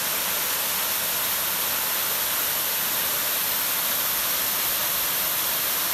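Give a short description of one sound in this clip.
A fast river rushes and gurgles close by.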